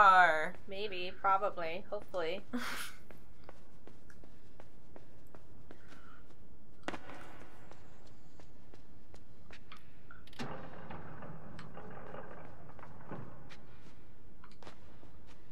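Footsteps patter softly across a hard floor.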